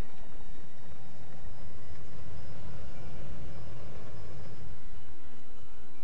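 A hovering aircraft roars overhead with a deep rumble.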